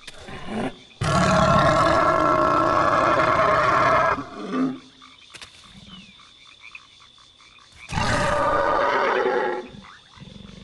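A creature roars loudly with a deep, growling voice.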